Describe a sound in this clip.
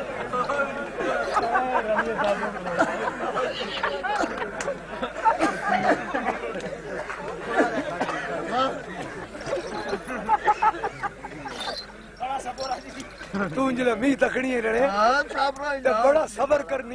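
A man sings loudly close by.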